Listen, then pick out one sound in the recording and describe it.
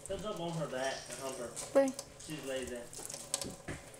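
Water splashes over a hand under a running tap.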